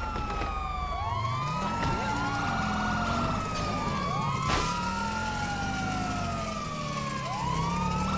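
A car engine revs as the car drives off.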